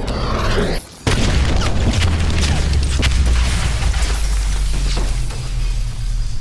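A loud explosion booms, followed by a rushing roar.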